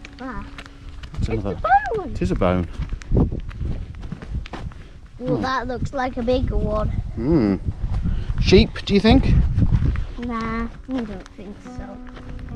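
A young boy talks with animation close by.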